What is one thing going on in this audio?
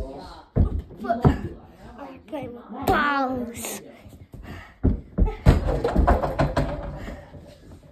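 A basketball bounces on a carpeted floor.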